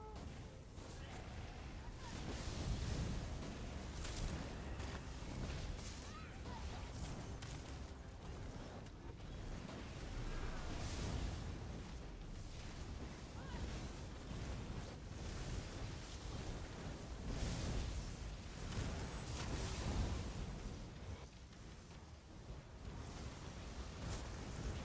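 Spell effects crackle and burst in a game fight.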